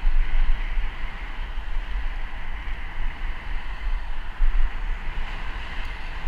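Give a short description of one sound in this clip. Bicycle tyres hum steadily on smooth pavement.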